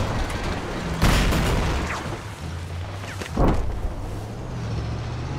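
Bushes scrape and crash against a vehicle.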